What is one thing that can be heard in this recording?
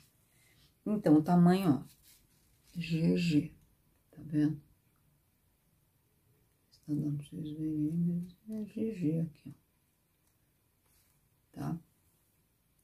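An elderly woman talks calmly close by, in short phrases with pauses.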